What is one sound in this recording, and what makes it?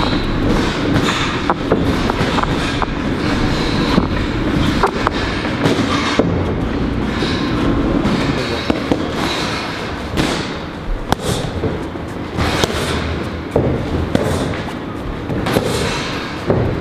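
Feet shuffle and scuff on a boxing ring's canvas.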